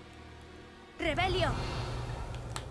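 A magic spell bursts with a crackling, fizzing whoosh.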